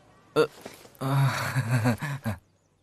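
A young man speaks calmly up close.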